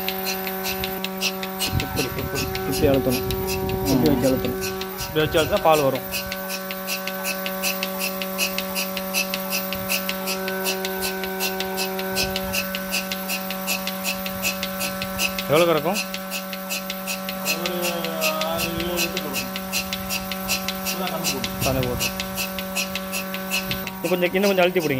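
A milking machine's motor hums steadily.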